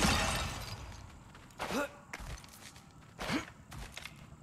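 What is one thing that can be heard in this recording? A thrown axe strikes rock with a sharp metallic clang.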